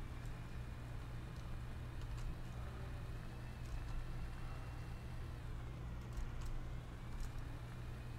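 A game vehicle's engine hums steadily.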